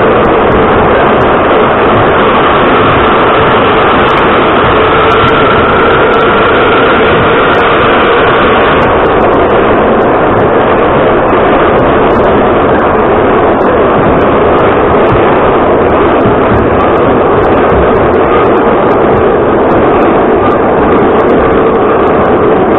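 A subway train roars loudly along the tracks.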